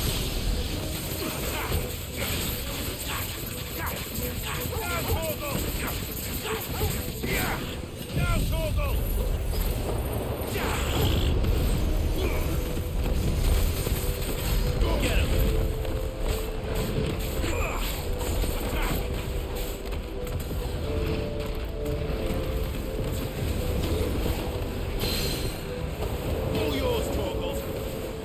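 Heavy impacts thud as a large creature is struck.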